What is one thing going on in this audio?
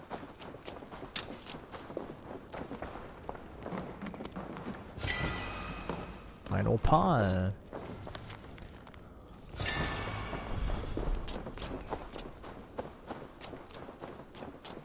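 Footsteps crunch on the ground at a walking pace.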